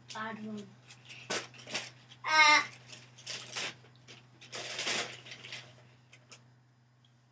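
A young boy talks and laughs excitedly close by.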